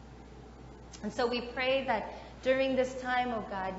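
A woman speaks calmly and clearly, as if addressing a gathering, in a room with a slight echo.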